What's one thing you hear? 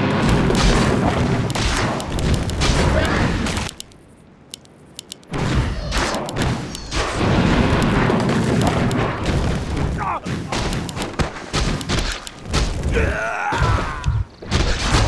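Spells crackle and weapons clash in a noisy fantasy battle.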